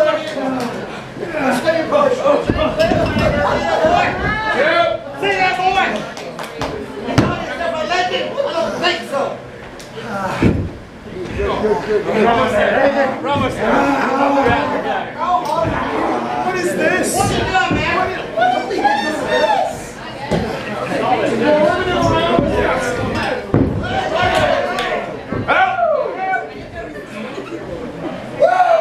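A crowd of people shouts and cheers close by.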